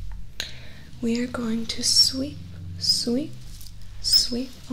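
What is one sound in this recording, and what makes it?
A young woman speaks softly and slowly very close to a microphone.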